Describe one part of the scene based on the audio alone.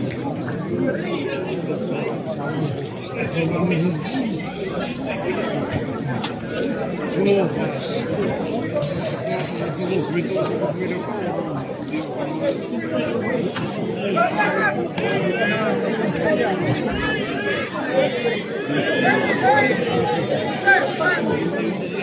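A large outdoor crowd chatters and calls out.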